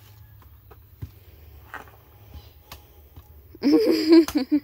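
A machete chops into a coconut with sharp knocks.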